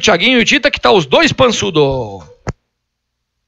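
A man speaks quickly and with animation into a close microphone.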